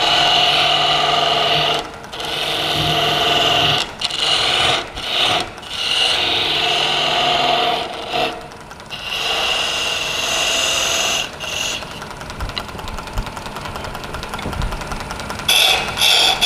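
A chisel scrapes and hisses against turning wood, in bursts.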